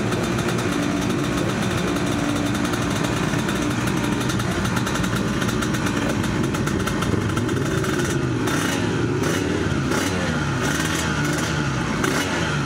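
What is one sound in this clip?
Several motorcycle engines rumble and rev nearby.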